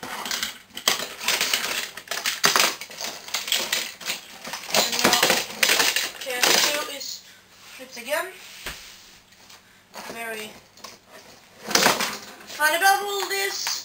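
Toy robots whir and clatter across a cardboard floor.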